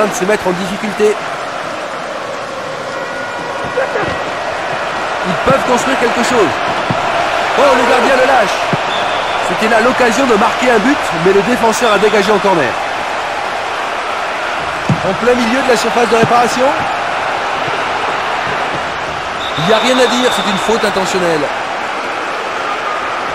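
A large crowd roars steadily in a stadium.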